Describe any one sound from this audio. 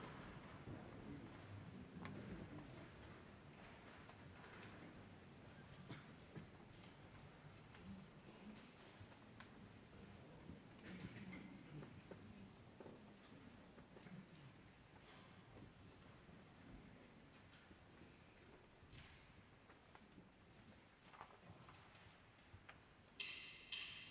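An audience rustles and shifts quietly in a large echoing hall.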